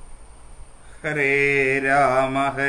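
A man chants in a steady, sustained voice close by.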